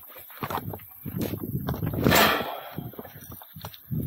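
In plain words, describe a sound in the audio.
A metal gate rattles and clanks.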